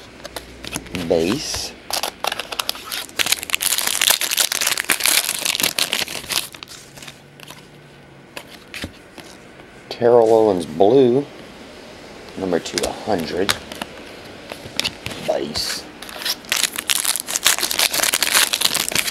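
Foil card wrappers crinkle and rustle as hands handle them.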